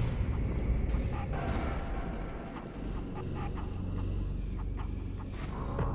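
A metal ball rolls and rumbles over a hard floor.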